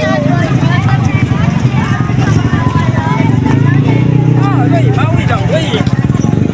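Young girls chatter and call out nearby.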